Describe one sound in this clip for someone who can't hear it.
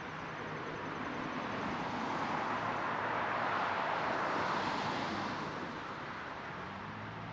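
A car drives past on a wet road and fades away.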